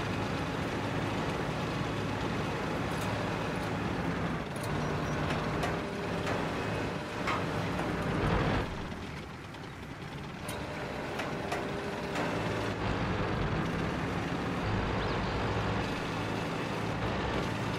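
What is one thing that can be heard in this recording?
A tank's tracks clatter over the ground.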